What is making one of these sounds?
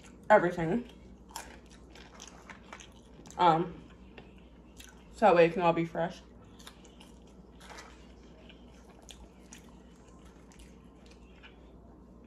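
A young woman chews french fries close to a microphone.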